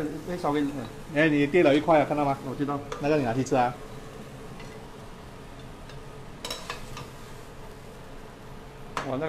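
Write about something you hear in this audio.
A metal ladle scrapes and clinks against a pan and plate.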